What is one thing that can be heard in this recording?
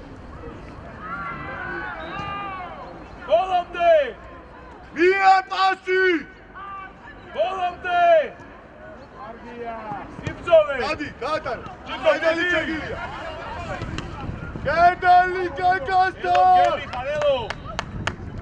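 Young men shout to each other across an open outdoor pitch.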